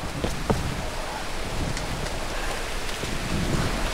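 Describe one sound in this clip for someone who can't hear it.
Footsteps tread on stone steps.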